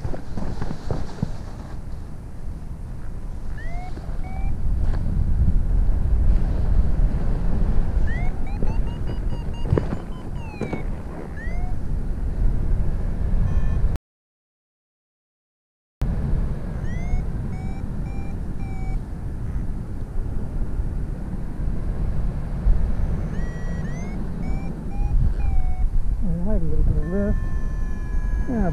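Wind rushes and buffets loudly outdoors during flight.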